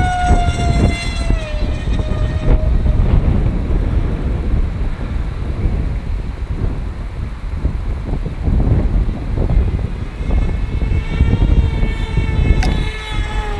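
Small drone motors whine and shift in pitch.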